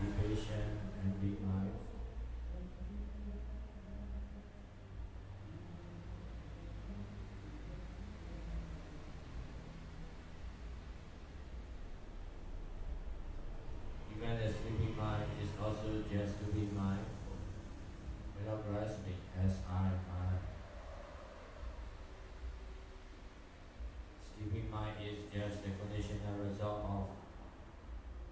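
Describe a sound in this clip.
A young man chants melodically into a microphone, heard through a loudspeaker in an echoing room.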